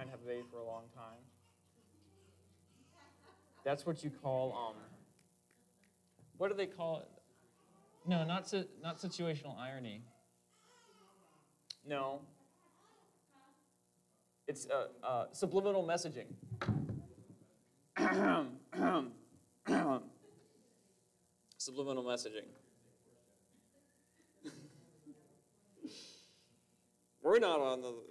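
A man speaks calmly in phrases with pauses, heard through a microphone in a large room.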